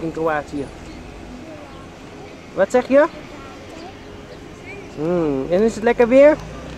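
A young boy talks close by in a high, lively voice.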